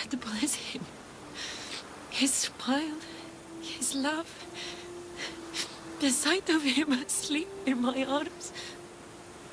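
A young woman speaks softly and with emotion.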